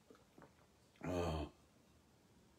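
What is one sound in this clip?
An older man speaks briefly close by.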